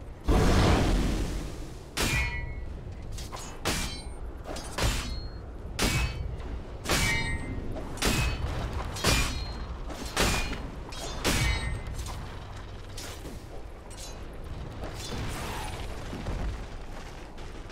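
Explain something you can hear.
Magic blasts and hits burst out again and again in a fight.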